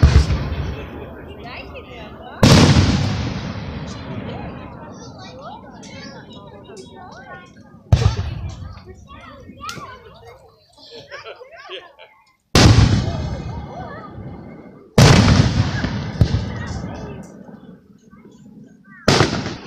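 Fireworks crackle and pop as sparks fall.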